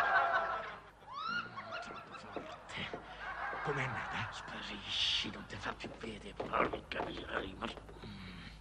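An elderly man speaks in a low voice, close by.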